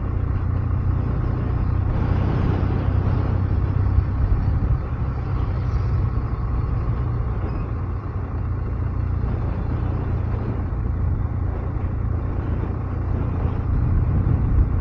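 Wind rushes past a microphone.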